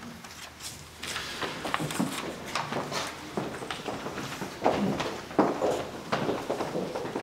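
Footsteps and high heels clack across a hard floor.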